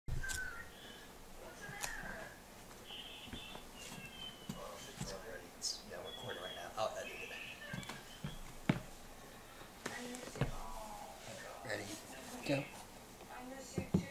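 Footsteps tap lightly on a tile floor.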